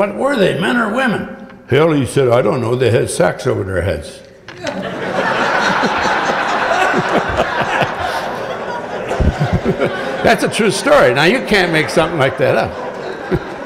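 A middle-aged man speaks through a microphone in a large hall.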